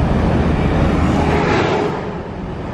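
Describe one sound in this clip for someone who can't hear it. A heavy truck roars past in the other direction.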